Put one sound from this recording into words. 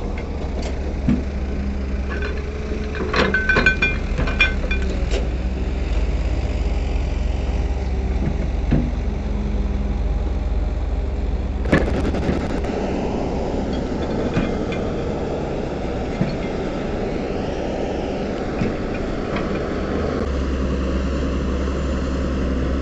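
An excavator engine rumbles steadily close by.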